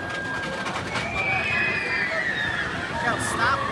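Riders on a roller coaster scream in the distance.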